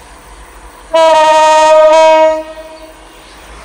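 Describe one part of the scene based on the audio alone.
A locomotive horn blasts loudly for about a second and a half.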